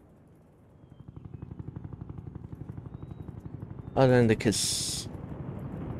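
A helicopter's rotor chops steadily as it flies.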